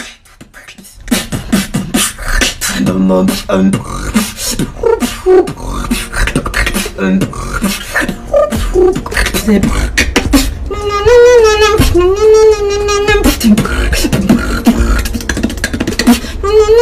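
A young woman beatboxes close to a microphone, with sharp percussive mouth sounds.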